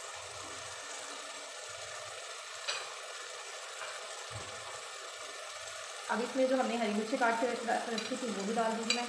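A thick sauce bubbles gently in a pot.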